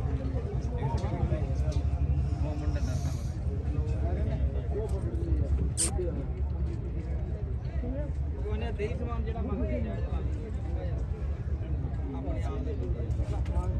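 Several men and women talk nearby in a murmur of overlapping voices.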